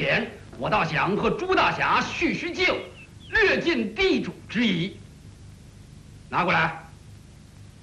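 A man speaks loudly and firmly.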